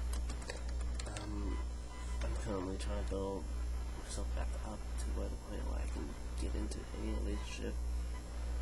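A young man talks close to a webcam microphone.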